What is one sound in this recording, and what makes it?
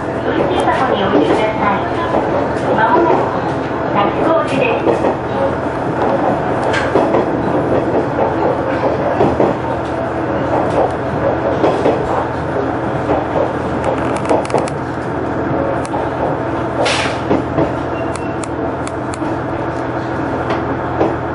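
A train engine hums and rumbles steadily from inside the cab.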